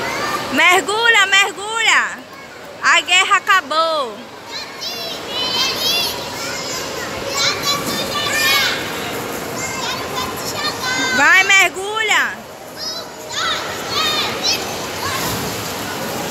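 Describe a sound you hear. A young girl squeals and shouts excitedly close by.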